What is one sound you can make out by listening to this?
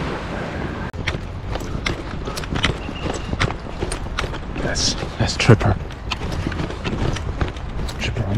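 Footsteps crunch and shuffle through loose sand.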